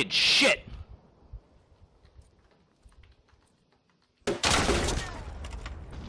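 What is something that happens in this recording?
A rifle fires loud, sharp gunshots.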